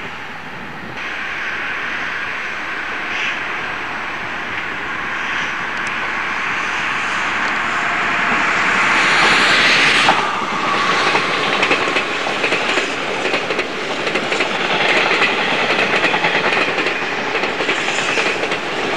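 An electric train approaches and roars past close by, rattling over the rails.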